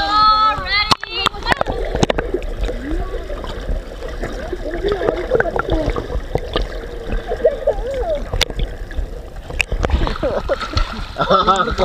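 Underwater, muffled rumbling and bubbling of water fills the sound.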